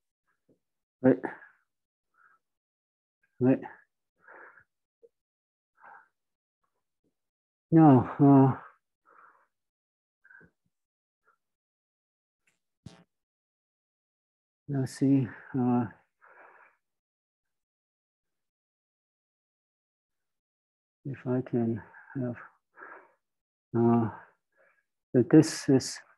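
A man lectures calmly in short bursts, close by.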